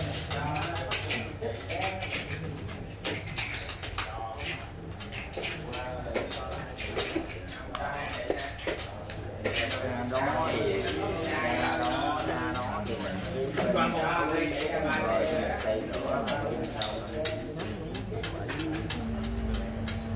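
Elderly men talk casually nearby.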